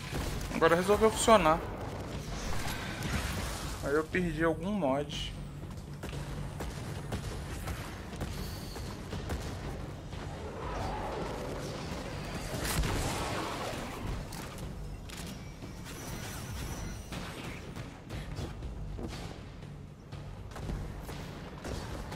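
Gunshots and blasts ring out in quick bursts.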